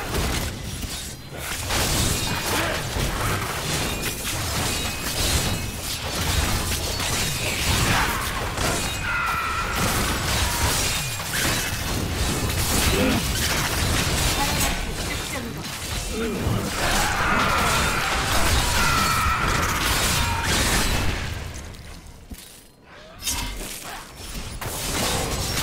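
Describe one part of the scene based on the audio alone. Spell blasts and weapon hits crash in a video game battle.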